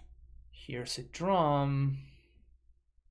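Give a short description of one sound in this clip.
A young man speaks close to a microphone, drawing out a word.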